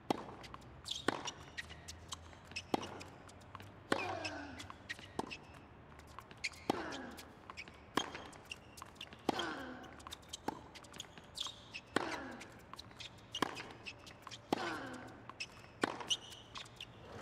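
Shoes squeak on a hard court.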